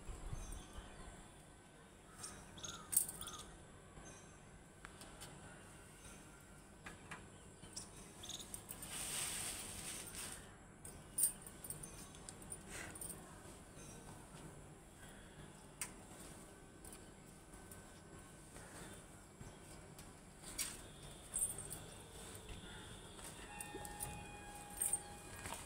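Leaves rustle softly as they are laid on the ground.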